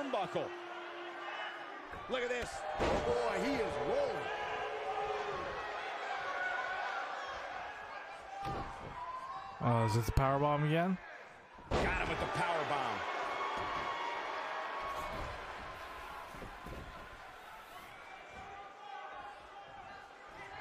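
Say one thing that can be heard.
A large crowd cheers and murmurs throughout.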